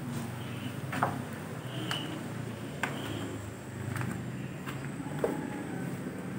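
Wood knocks sharply a few times nearby.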